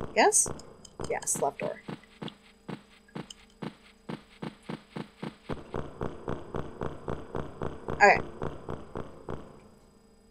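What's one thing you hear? Footsteps echo quickly on a stone floor.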